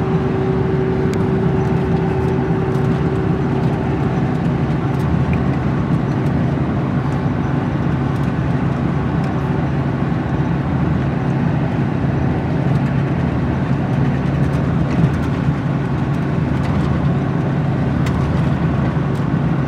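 A vehicle's engine hums steadily as it drives along a road.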